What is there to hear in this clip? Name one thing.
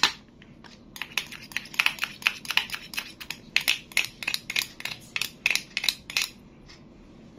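Plastic toy pieces click apart.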